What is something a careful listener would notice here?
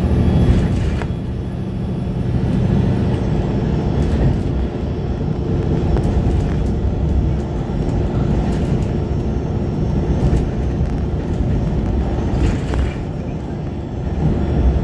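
A vehicle drives steadily along a road, with a low rumble of engine and tyres.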